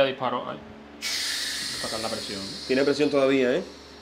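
Steam hisses steadily from a pressure cooker.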